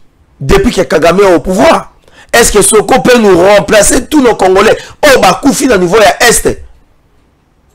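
A man speaks forcefully and with animation into a microphone.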